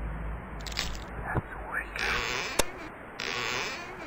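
A cabinet door creaks open.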